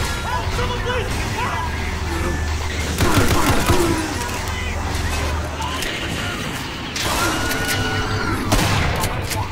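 A pistol fires several sharp shots, ringing off metal walls.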